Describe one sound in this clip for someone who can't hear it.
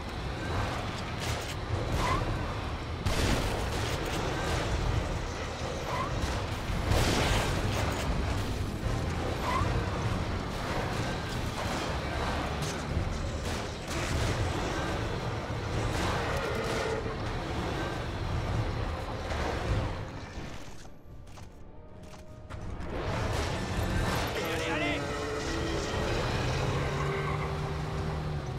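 A giant creature growls and roars.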